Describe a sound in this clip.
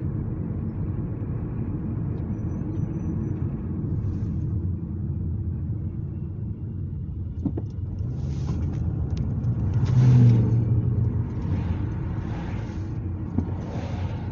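Tyres roll on the road surface.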